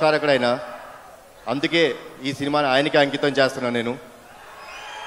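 A man speaks calmly into a microphone, amplified through loudspeakers.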